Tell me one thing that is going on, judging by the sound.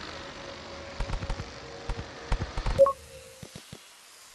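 Explosions thump in quick bursts.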